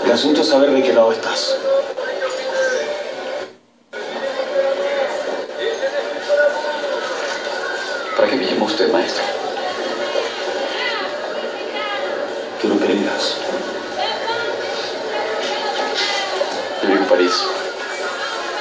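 A man talks quietly, heard through a loudspeaker.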